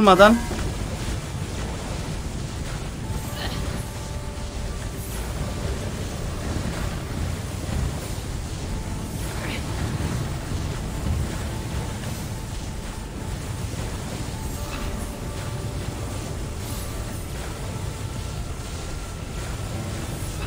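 Fiery projectiles whoosh and roar past.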